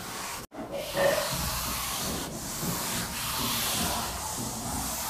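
A duster rubs and scrapes across a chalkboard.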